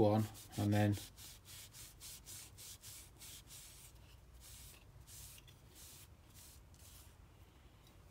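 A cloth rubs briskly along a knife blade.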